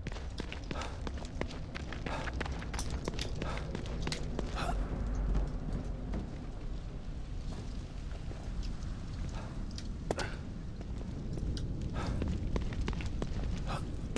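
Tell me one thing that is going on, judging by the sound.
Footsteps slap quickly on wet pavement.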